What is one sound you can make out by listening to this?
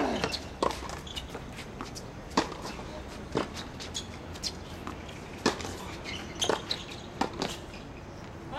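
Tennis balls are hit with sharp, hollow pops, back and forth, outdoors.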